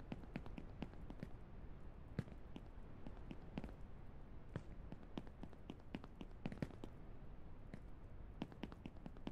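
Footsteps clank on a metal roof.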